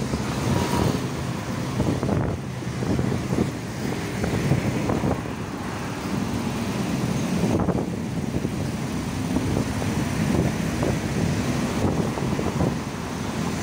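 Traffic rumbles steadily on a busy road nearby.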